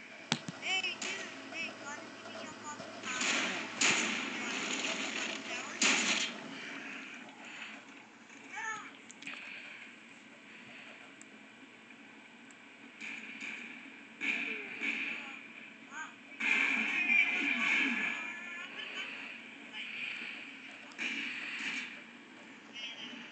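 Game gunfire and explosions play through a television speaker.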